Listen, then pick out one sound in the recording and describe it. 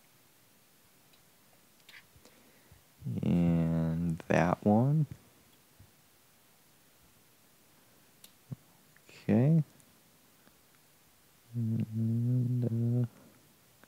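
A small screwdriver clicks and scrapes against a plastic phone case.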